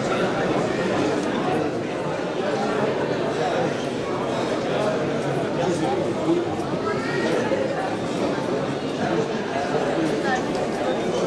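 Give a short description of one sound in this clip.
A crowd of men and women murmurs and chatters in a room.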